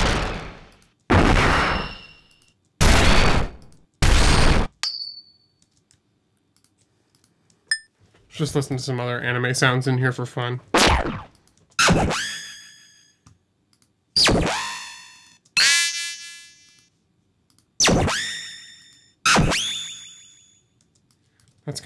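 Percussive drum hits play one after another, each ringing out and fading.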